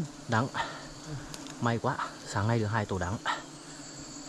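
A man speaks close by in short, animated bursts.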